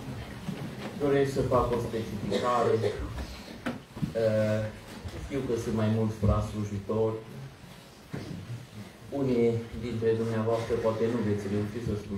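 A man chants slowly in a large echoing hall.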